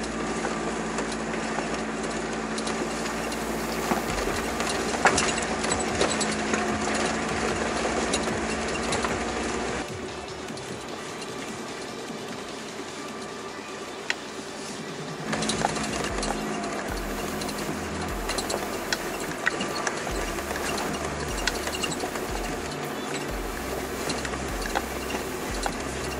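Stones knock against the underside of the car.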